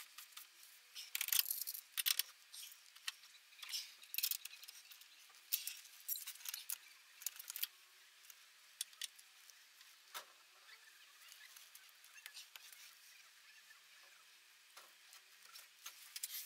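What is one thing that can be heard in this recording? Metal tools clink and scrape against car parts close by.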